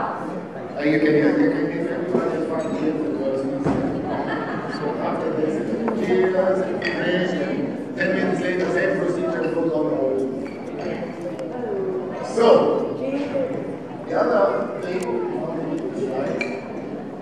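A young woman speaks through a microphone over loudspeakers.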